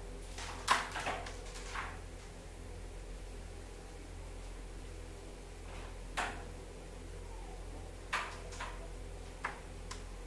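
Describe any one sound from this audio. Carrom pieces click sharply against each other and the board's rim.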